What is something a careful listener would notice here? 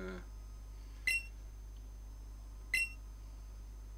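A video game menu blips as the cursor moves.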